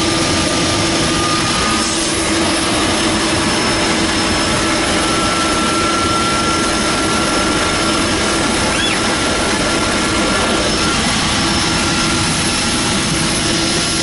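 A small plane's engine drones loudly and steadily inside the cockpit.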